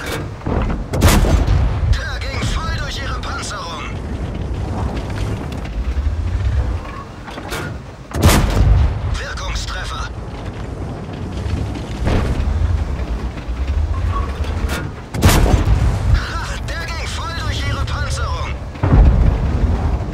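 A tank cannon fires with loud, booming blasts.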